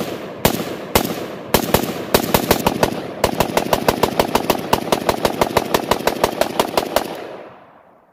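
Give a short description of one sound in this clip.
A gun fires single shots and then a rapid burst, echoing loudly outdoors.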